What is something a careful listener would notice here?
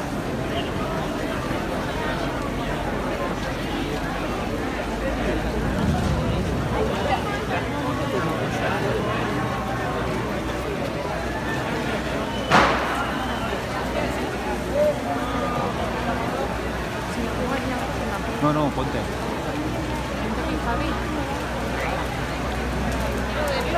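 A large bonfire roars and crackles.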